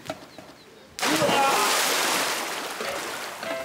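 Water splashes heavily as someone jumps into a pool.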